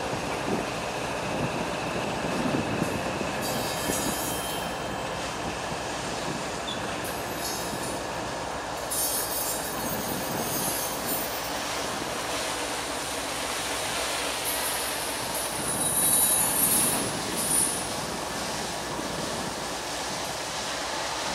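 A long freight train rumbles and rattles steadily along the tracks in the distance.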